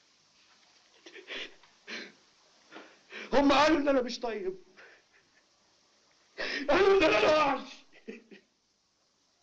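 A man speaks loudly and urgently, close by.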